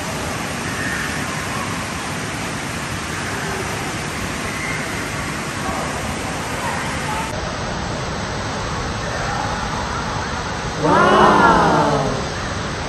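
Water gushes and splashes steadily into a pool in a large echoing hall.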